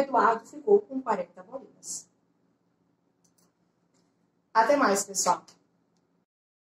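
A woman speaks close by, explaining with animation.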